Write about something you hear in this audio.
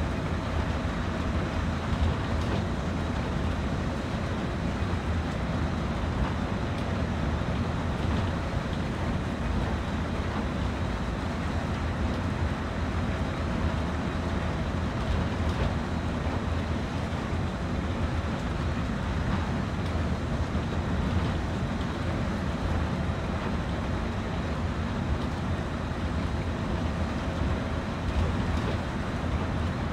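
A diesel locomotive engine rumbles steadily from inside the cab.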